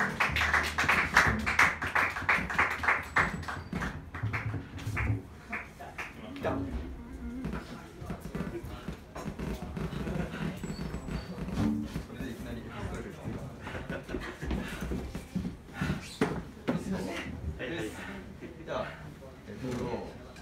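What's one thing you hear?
A double bass plays a walking line.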